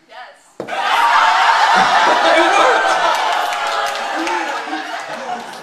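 An audience claps loudly.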